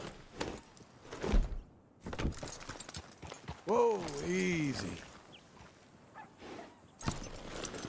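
Horse hooves thud on dry ground.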